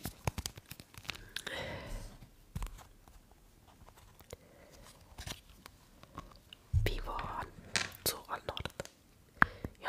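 Plastic packaging crinkles and taps close to a microphone.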